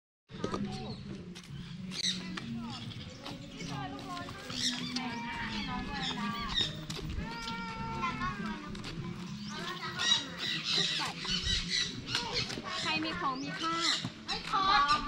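A young child talks and chatters close by.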